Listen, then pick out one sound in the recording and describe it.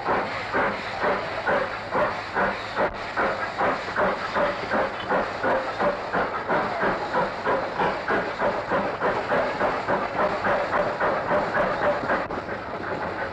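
A small steam tank engine chuffs as it pulls away.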